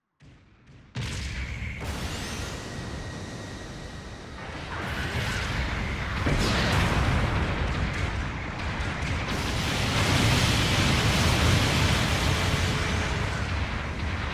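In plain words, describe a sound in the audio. A giant robot's thrusters roar steadily.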